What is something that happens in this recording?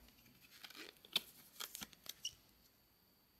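A plastic card sleeve crinkles and clicks in hands.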